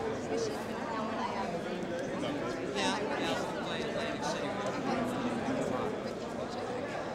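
A crowd of men and women chatter and talk over one another in a large room.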